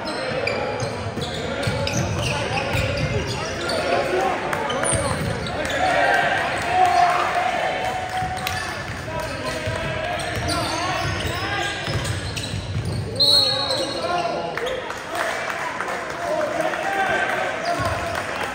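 Players and spectators call out and chatter in a large echoing gym.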